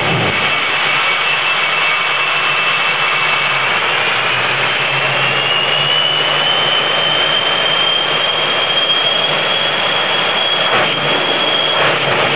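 A high turbine whine slowly rises in pitch.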